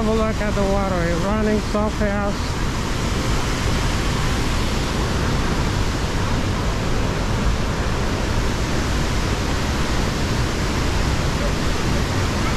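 A waterfall and a rushing river roar steadily nearby.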